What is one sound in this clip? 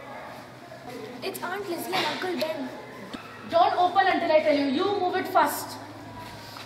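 A young woman speaks loudly and with feeling.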